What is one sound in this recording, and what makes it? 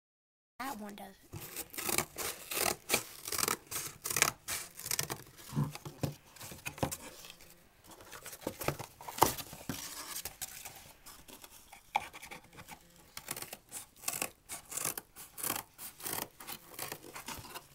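Cardboard rustles and scrapes as it is handled.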